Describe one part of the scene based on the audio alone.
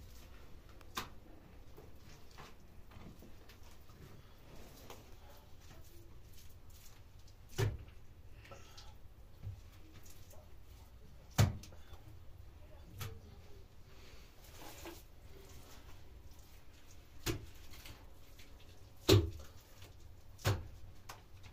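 Sharp knocks and thuds sound now and then.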